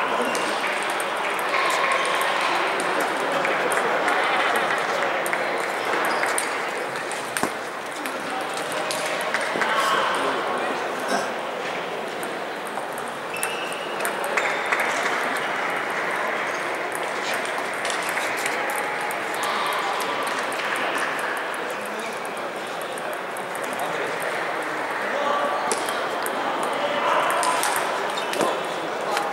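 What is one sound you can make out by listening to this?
A crowd murmurs in the background of the hall.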